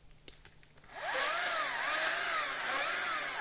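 A chainsaw revs up and down in bursts.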